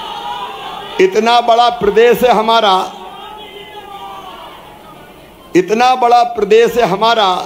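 A middle-aged man speaks forcefully into a microphone over loudspeakers.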